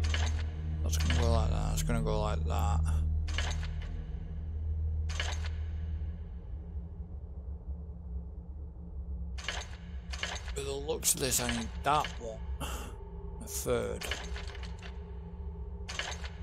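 Metal levers clack and click into place one after another.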